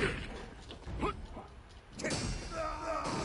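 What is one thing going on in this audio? Swords clash with sharp metallic hits.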